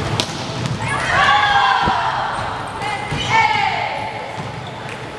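Young women shout and cheer in a large echoing hall.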